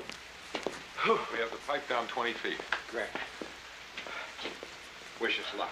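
Another man talks with animation nearby.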